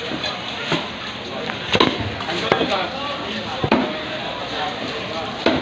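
A cleaver chops through fish onto a wooden chopping block.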